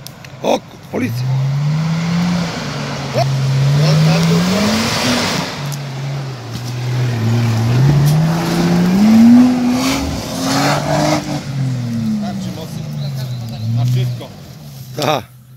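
An off-road vehicle's engine revs hard, rising and falling as it climbs.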